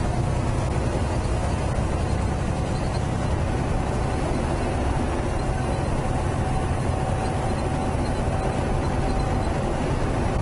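Tyres hum steadily on the road.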